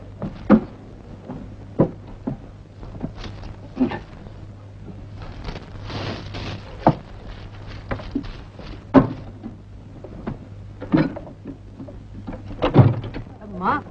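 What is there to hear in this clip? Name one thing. Wood knocks and thumps sharply up close.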